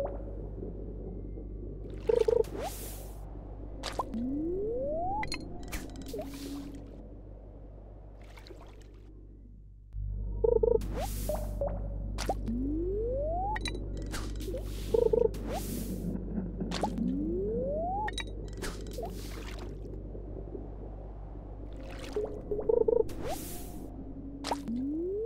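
A fishing line casts with a whoosh.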